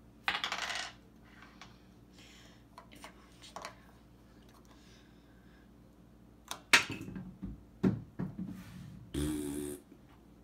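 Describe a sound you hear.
Small plastic toy figures click and knock against a wooden surface.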